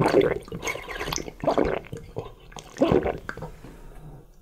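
A man slurps and gulps a drink close by.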